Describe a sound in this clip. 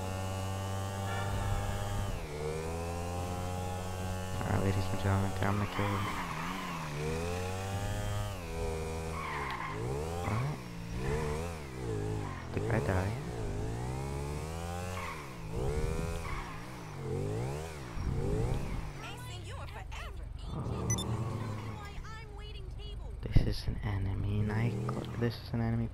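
A motorcycle engine revs up and down as the bike speeds along.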